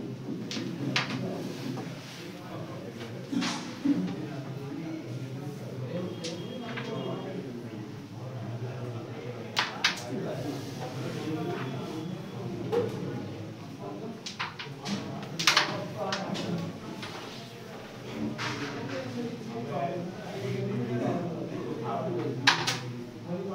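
Carrom pieces click sharply against each other on a wooden board.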